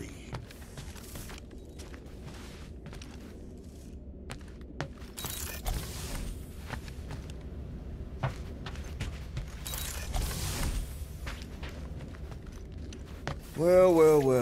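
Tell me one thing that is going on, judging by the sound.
Footsteps thud on a hard metal floor.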